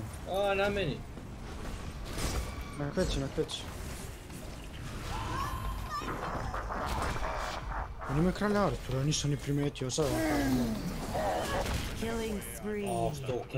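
Game spell blasts and impacts crackle and whoosh.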